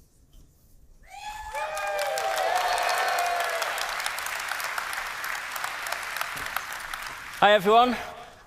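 A large audience claps and cheers in a big hall.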